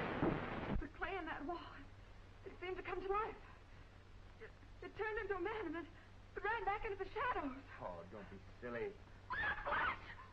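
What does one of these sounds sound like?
A woman speaks anxiously nearby.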